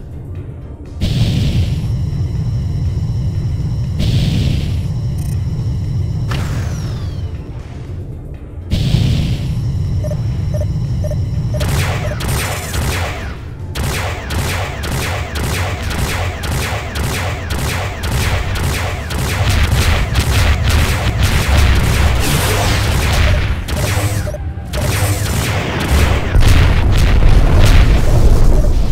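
A spacecraft engine rumbles deeply.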